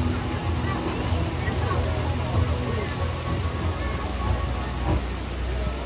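Water jets of a fountain spray and splash steadily.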